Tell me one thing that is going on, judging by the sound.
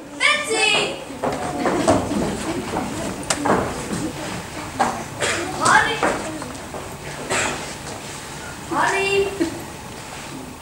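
A man speaks on stage in an echoing hall.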